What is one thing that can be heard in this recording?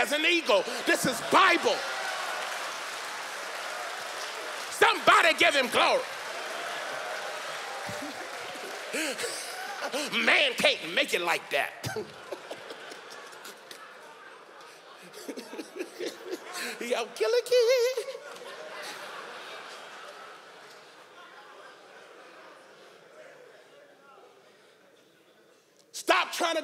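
A man speaks animatedly into a microphone in a large echoing hall.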